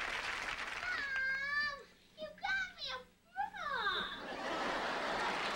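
A young child squeals and shouts excitedly.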